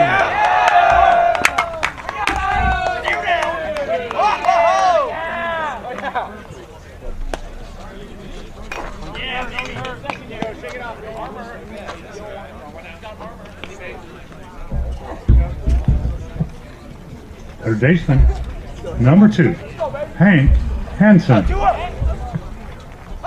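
Young men shout and cheer from a distance outdoors.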